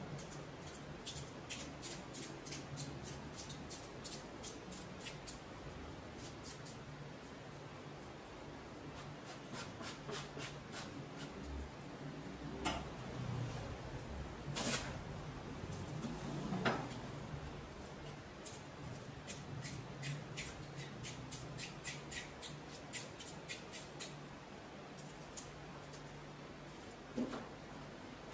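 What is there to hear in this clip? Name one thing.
Corn husks crackle and tear as hands peel them away.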